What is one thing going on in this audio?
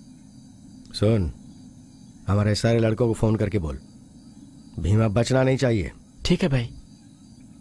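A middle-aged man speaks outdoors.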